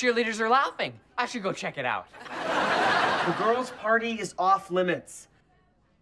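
A second teenage boy answers excitedly.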